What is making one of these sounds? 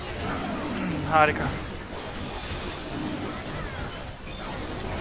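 Video game combat sound effects clash and ring.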